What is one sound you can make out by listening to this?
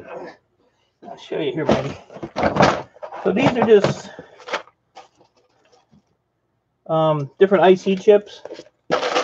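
Small plastic pieces clatter and rattle as a hand stirs through them in a plastic tub.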